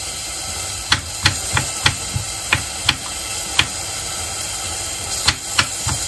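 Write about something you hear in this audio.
A knife taps sharply on a cutting board, chopping garlic in quick knocks.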